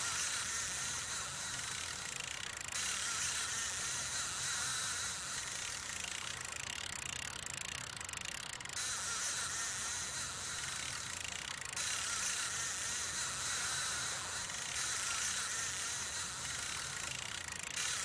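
Water rushes steadily in a stream.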